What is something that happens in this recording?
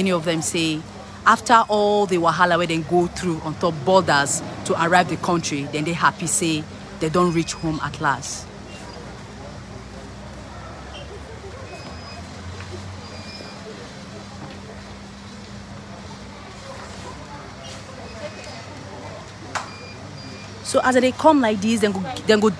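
A woman talks close by with animation.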